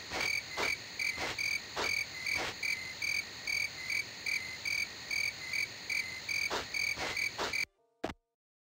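Footsteps thud at a steady pace on hard ground.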